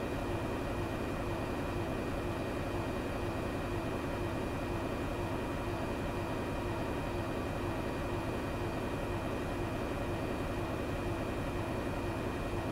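Jet engines of an airliner drone steadily, heard from the cockpit.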